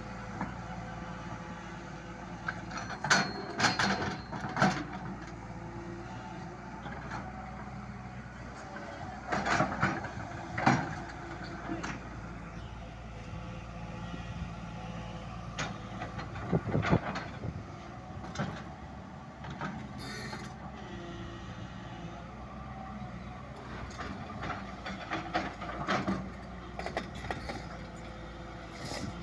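A diesel engine of a digger rumbles steadily nearby.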